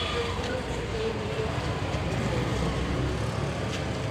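A motorbike engine runs nearby.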